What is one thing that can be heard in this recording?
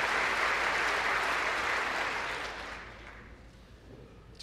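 A crowd applauds in a large echoing hall, fading away.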